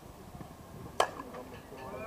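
A bat cracks sharply against a softball.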